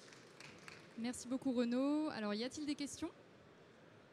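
A woman speaks briefly into a microphone, heard through loudspeakers.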